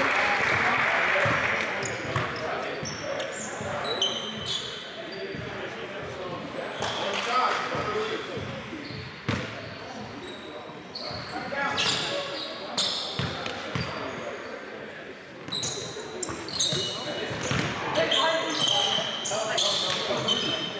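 The gym sounds large and echoing.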